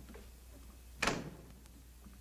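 A door clicks.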